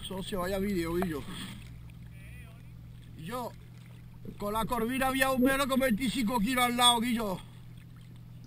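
A man calls out loudly from a nearby boat.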